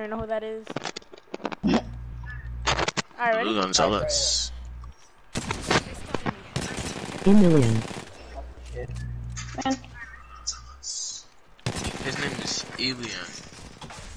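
Gunshots fire in short bursts.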